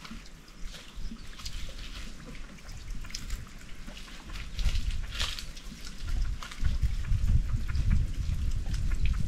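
A hoe scrapes and chops into dry soil a short way off.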